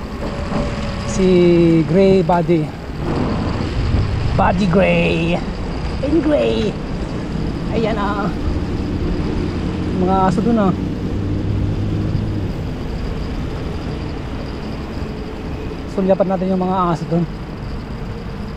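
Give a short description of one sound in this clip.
Wind rushes past a moving bicycle.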